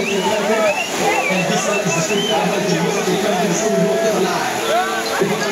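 A large crowd of young people cheers and shouts loudly close by.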